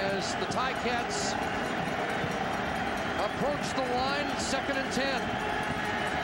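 Whistles and shouts ring out from the crowd.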